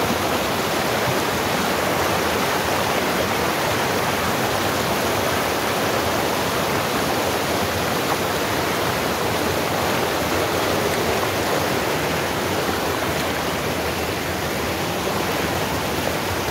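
A shallow stream rushes and splashes loudly over rocks close by.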